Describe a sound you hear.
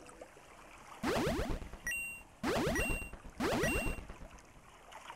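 A cartoon whale's water spout gushes up in short whooshing bursts.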